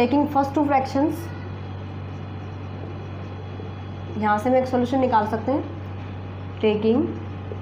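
A woman speaks calmly, as if explaining a lesson.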